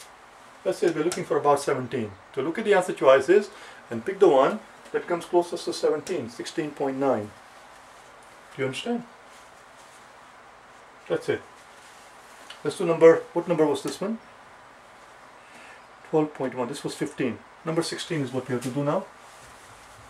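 A middle-aged man speaks calmly and explains, close by.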